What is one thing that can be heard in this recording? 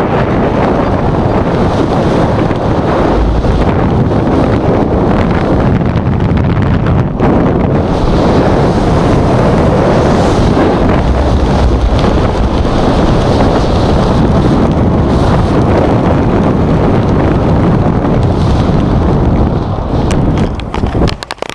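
Strong wind roars loudly and steadily.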